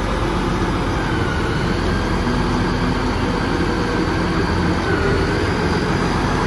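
A tractor engine idles with a steady, rough rumble close by.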